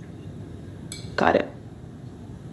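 A young woman answers briefly.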